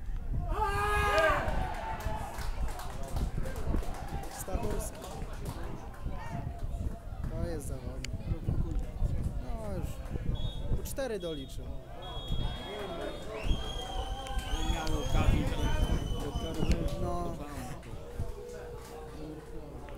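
Footballers shout to each other outdoors across a field.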